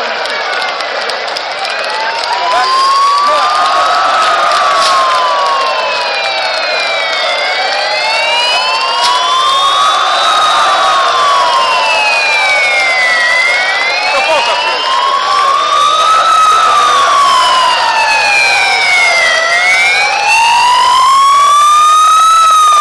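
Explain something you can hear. Sirens wail, rising and falling slowly and steadily.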